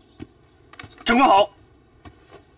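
A young man shouts a short greeting.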